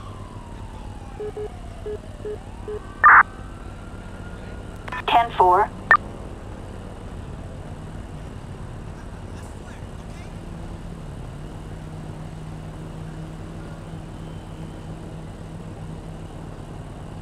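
A motorcycle engine idles steadily nearby.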